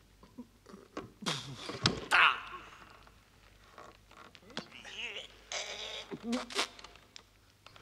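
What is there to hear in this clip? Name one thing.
Men strain and grunt while arm wrestling.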